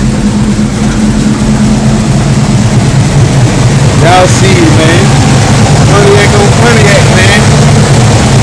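A car engine idles with a steady, deep rumble.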